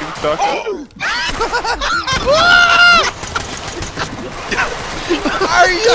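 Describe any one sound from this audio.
Gunshots fire in a rapid burst.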